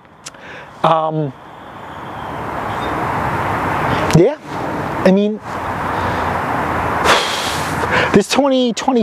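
A man speaks close by, in short bursts.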